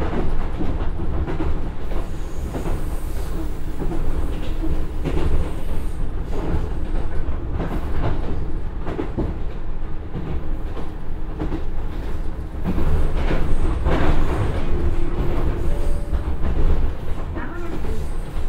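A diesel train engine rumbles steadily from close by.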